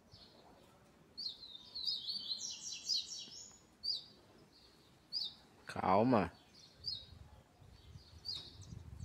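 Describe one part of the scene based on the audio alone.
A small bird chirps and trills in a cage, close by.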